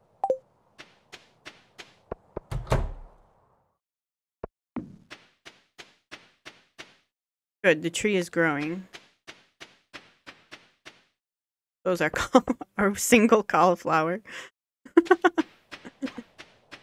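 Footsteps tap quickly and evenly across the ground.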